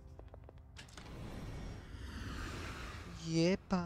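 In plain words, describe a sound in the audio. A door opens with a soft whoosh.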